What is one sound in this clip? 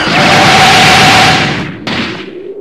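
A loud energy blast roars and crackles.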